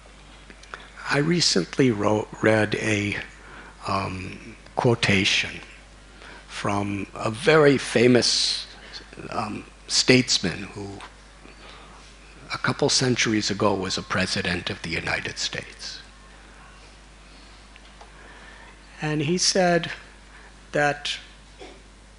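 An elderly man speaks calmly and with feeling into a microphone, in pauses.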